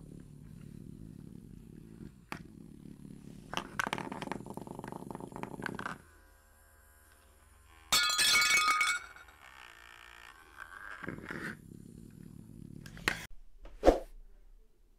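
A plastic toy grabber clacks its jaws.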